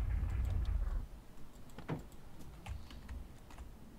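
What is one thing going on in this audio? A truck door clicks open.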